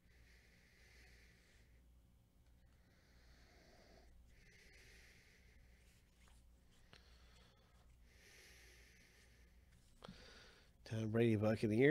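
Glossy trading cards slide and rustle as they are flipped through by hand.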